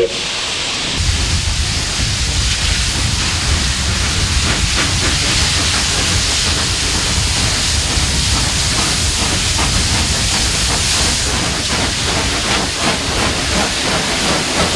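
Steam locomotives chuff heavily and rapidly as they pull away.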